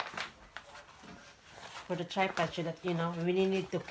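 A bag's fabric rustles as it is handled.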